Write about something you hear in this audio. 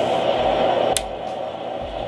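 A fan's switch clicks.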